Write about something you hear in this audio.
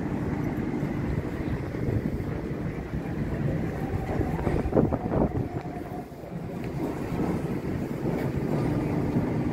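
Footsteps tap on a paved walkway.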